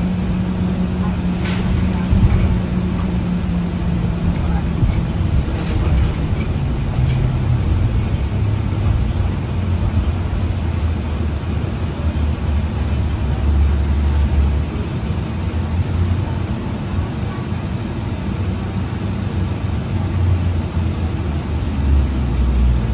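A bus engine hums and rumbles low and steady as the bus drives along.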